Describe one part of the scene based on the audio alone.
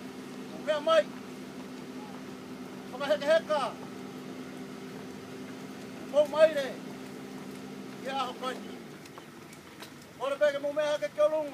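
A group of men and women sing together in short phrases, a little way off outdoors.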